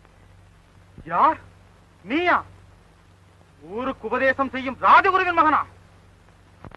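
A man sings loudly with a strong, wavering voice through an old, hissy recording.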